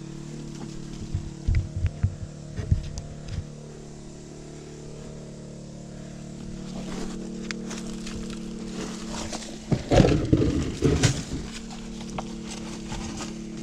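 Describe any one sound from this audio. Footsteps crunch on dry leaves and loose rock.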